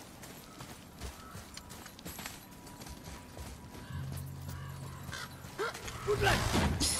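Heavy footsteps crunch slowly on gravel.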